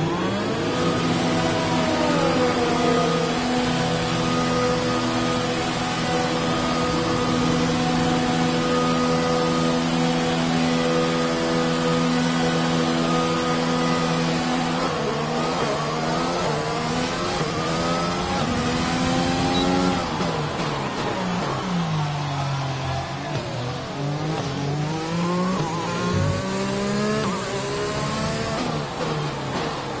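A racing car engine hums steadily at low speed, then revs up and down sharply as gears change.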